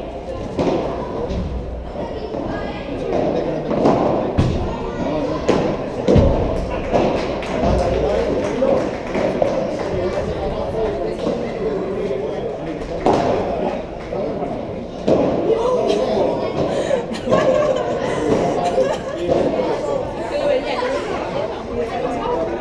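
Padel rackets strike a ball with sharp pops in a large echoing hall.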